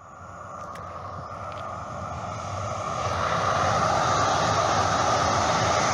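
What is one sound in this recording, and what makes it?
A train rumbles past in the distance.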